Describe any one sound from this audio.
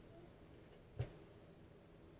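A card is set down on a table with a soft tap.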